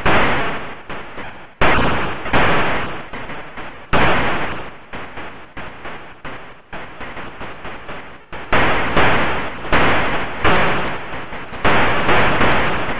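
Harsh, crackling bursts of noise from a retro video game crash over and over, each one quickly fading.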